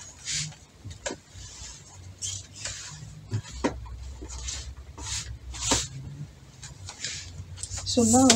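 Silky fabric rustles and swishes.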